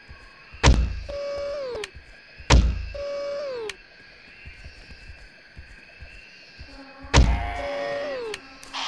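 A crossbow's mechanism cranks back with a rapid clicking whir after each shot.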